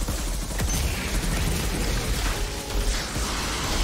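Fiery explosions crackle and boom.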